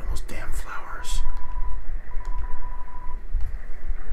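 Short electronic blips tick out in quick succession.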